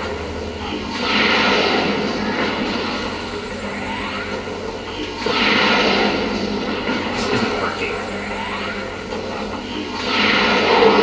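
A game's energy blast bursts with a loud roar.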